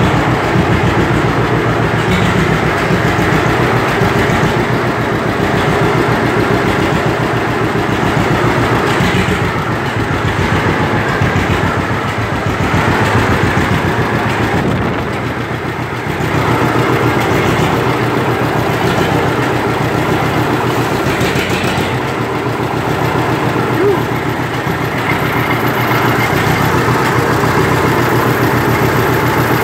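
An old tractor engine runs up close with a steady, rapid chugging.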